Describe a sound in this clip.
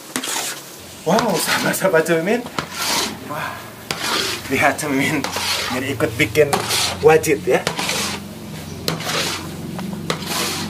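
A wooden paddle scrapes and stirs a thick, gritty mixture in a metal pan.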